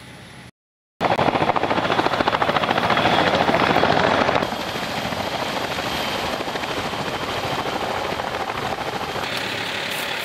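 Tandem-rotor military helicopters thump as they fly in and land.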